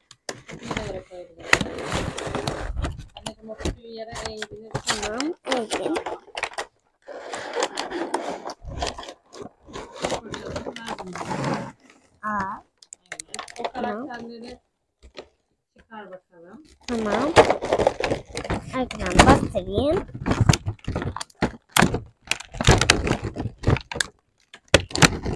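Plastic packaging crinkles and rustles as a boy opens a toy box.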